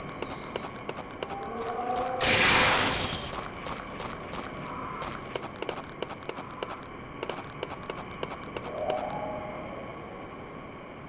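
Footsteps from a video game character tap along a path.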